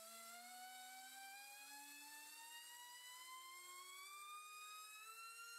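A small electric motor spins a propeller with a high whine that rises steadily in pitch.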